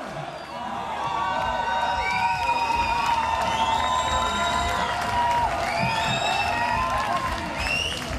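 Members of a crowd whistle shrilly.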